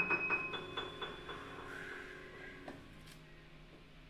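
A piano plays a few notes that ring out and slowly fade.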